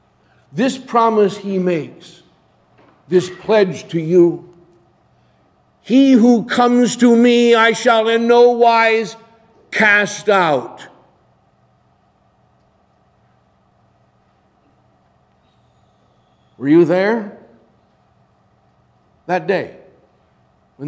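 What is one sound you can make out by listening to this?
A middle-aged man preaches with animation in a large echoing room, pausing between phrases.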